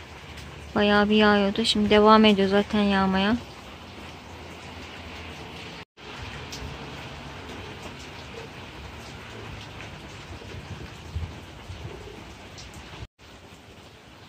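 Rain patters steadily on leaves and a wooden ledge.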